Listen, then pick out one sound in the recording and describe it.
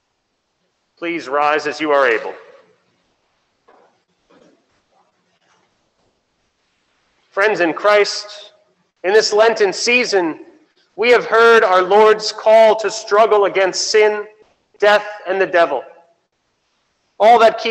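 A man speaks calmly through a microphone in a large echoing hall, reading out in phrases.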